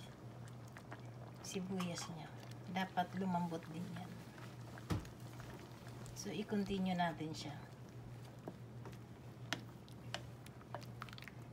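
A wooden spoon stirs a brothy stew in a metal pot.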